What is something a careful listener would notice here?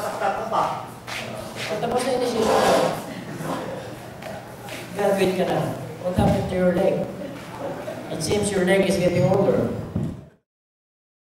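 A man speaks with animation into a microphone, heard through a loudspeaker in an echoing room.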